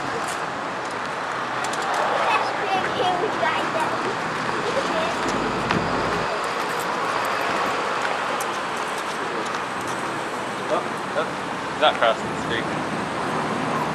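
Traffic hums steadily along a street outdoors.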